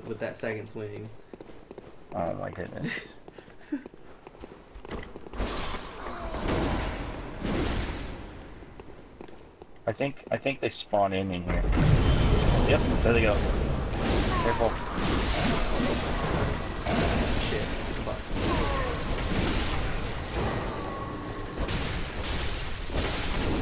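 Heavy weapons clash and strike flesh.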